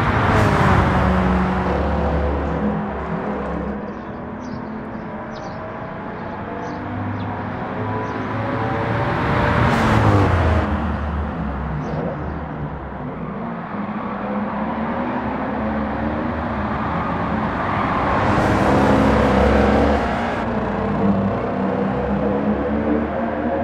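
A V8 sports car engine roars at high revs, rising and falling in pitch through the gears.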